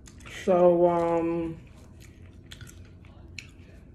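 A tortilla wrap rustles as it is folded.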